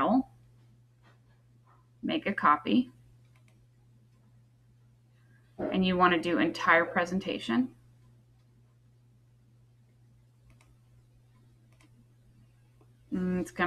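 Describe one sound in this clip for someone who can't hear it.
A woman speaks calmly and clearly into a microphone, with short pauses.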